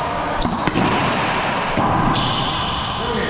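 A racquetball smacks hard against a wall.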